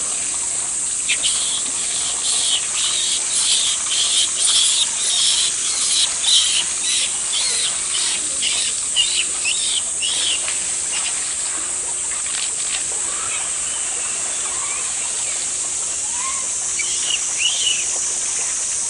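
A young monkey squeals with short, high cries.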